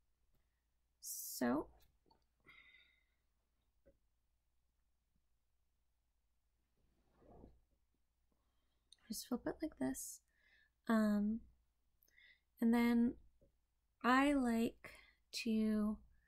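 A young woman speaks close by, in short calm phrases with pauses.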